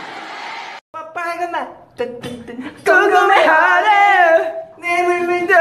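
Young men shout and laugh close by.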